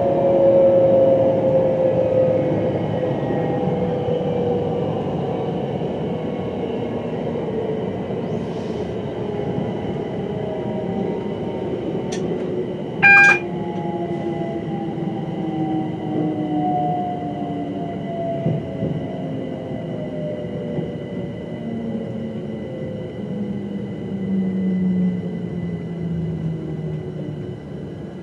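A train's motor whines, slowly falling in pitch as it slows.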